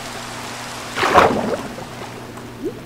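A video game splash sounds.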